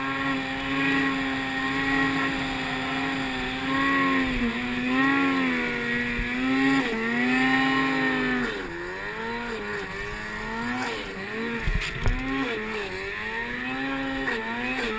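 A snowmobile engine revs up and down as the sled plows through deep powder.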